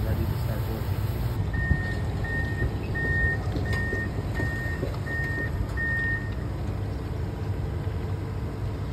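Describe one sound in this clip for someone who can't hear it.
A heavy diesel engine idles nearby with a low, steady rumble.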